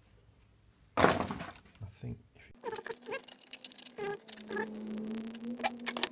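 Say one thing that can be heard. A plastic hose scrapes and knocks against a fitting.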